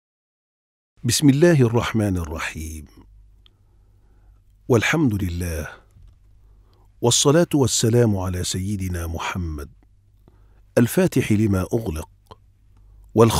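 An elderly man speaks calmly, close to the microphone.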